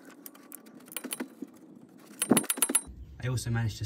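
A ratchet wrench clicks as a bolt is tightened.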